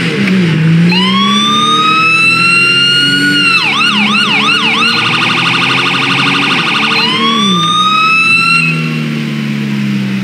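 A police siren wails, rising and falling, then yelps rapidly.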